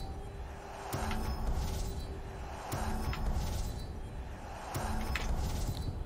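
A soft menu chime rings with each selection.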